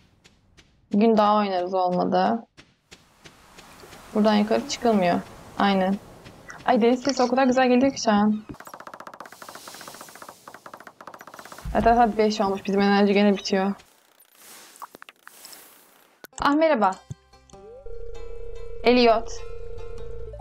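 A young woman talks calmly and closely into a microphone.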